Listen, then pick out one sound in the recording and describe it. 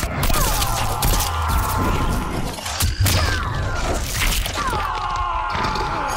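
Flesh squelches and blood splatters.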